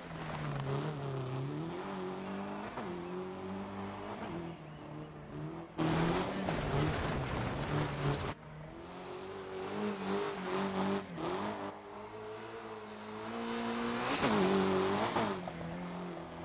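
A rally car engine roars and revs.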